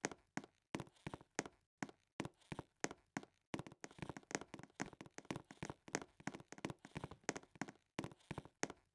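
Quick footsteps patter steadily on a hard floor.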